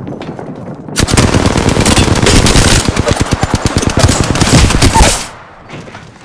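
A rifle fires rapid bursts of loud gunshots.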